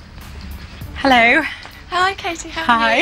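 A woman greets someone cheerfully.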